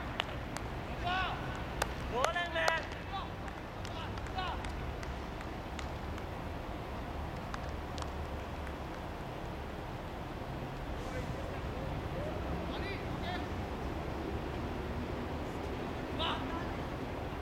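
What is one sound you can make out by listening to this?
Men call out across an open field.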